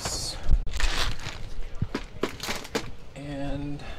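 A plastic case clatters as it is handled.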